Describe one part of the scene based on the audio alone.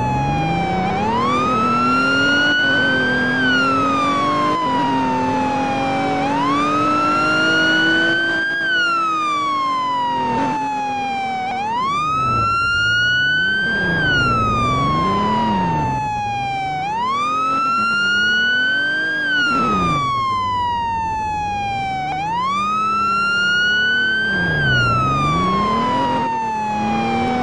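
A siren wails, rising and falling in slow cycles.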